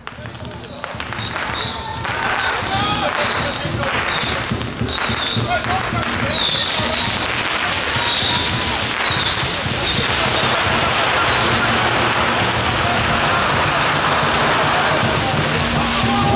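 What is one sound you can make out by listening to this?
A crowd of men chatter and call out outdoors.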